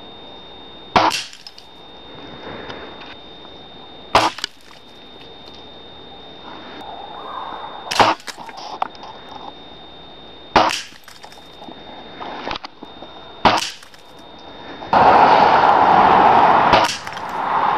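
Walnuts crack apart as pellets strike them.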